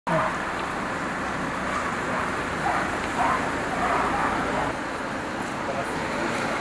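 Leaves rustle in a breeze.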